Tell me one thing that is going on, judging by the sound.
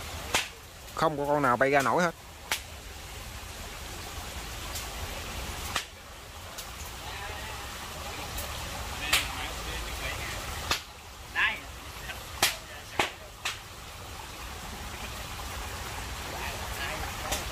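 A fire crackles and pops close by.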